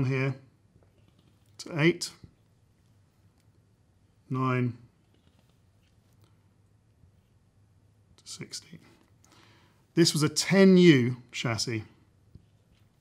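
A middle-aged man speaks calmly and clearly into a close microphone, in short bursts with pauses.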